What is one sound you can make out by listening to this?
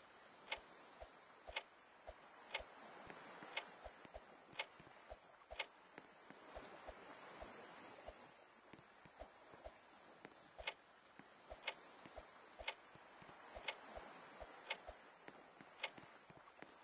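A countdown timer ticks once a second.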